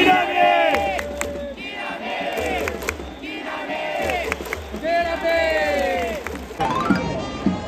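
A large stadium crowd chants in unison outdoors.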